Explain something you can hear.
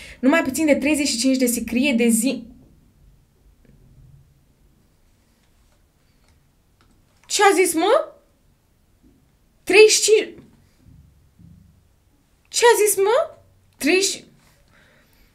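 A young woman speaks into a close microphone in short bursts.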